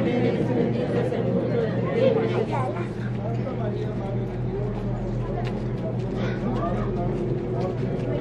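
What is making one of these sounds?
A crowd of men and women talks and murmurs close by outdoors.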